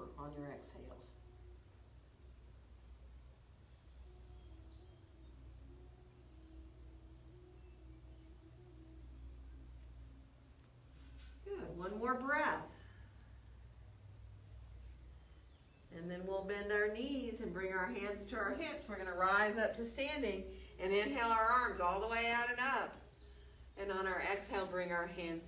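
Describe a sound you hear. A woman speaks calmly, giving instructions.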